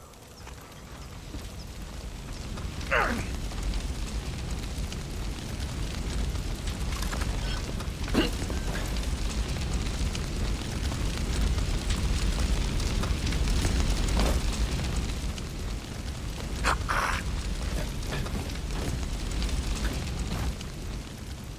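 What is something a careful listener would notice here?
Flames roar and crackle loudly close by.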